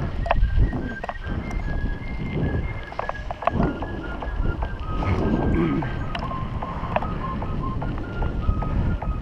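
Bicycle tyres crunch over a dirt track.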